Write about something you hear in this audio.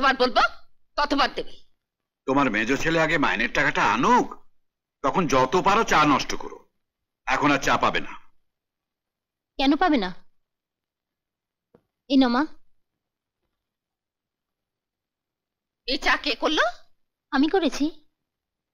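An older woman speaks with animation, close by.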